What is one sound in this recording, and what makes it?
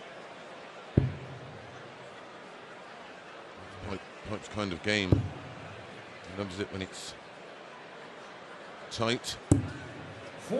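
A dart thuds sharply into a dartboard.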